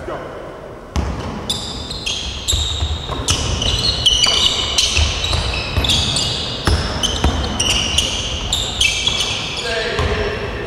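Sneakers squeak sharply on a hardwood floor in an echoing hall.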